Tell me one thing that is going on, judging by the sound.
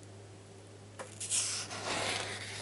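A page of paper rustles as it is turned.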